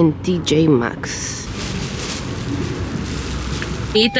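Plastic bags rustle.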